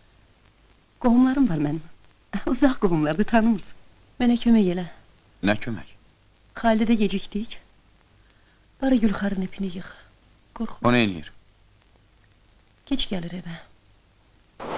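A man speaks quietly.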